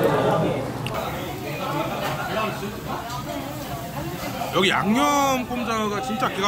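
Meat sizzles on a grill.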